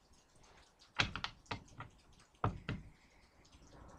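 Objects rustle and knock as a woman handles them.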